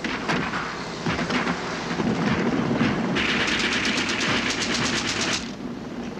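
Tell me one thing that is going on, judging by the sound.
Truck engines rumble as the trucks drive closer.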